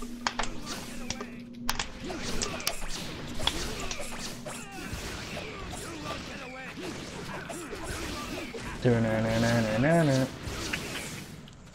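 Hits and blasts crack sharply during a fast fight.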